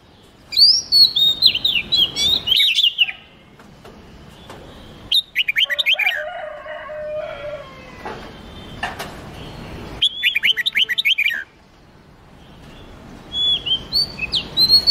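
Songbirds sing in bursts of quick, clear whistling phrases.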